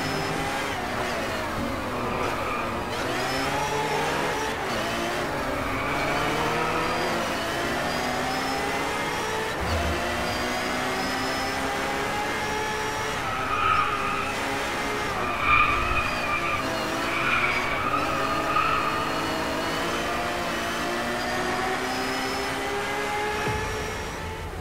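A racing car engine roars, rising and falling in pitch as it shifts through the gears.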